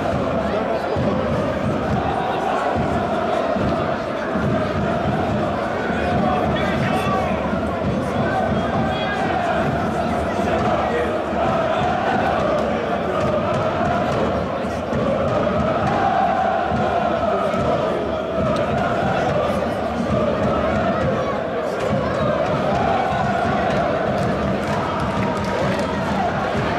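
A large crowd of men chants loudly in unison in an open stadium.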